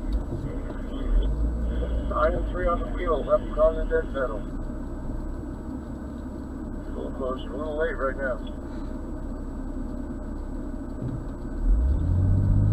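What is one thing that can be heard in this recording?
A car engine idles steadily from inside the car.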